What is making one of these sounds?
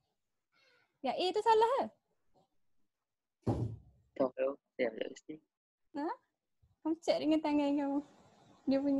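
A young woman speaks calmly over an online call, close to the microphone.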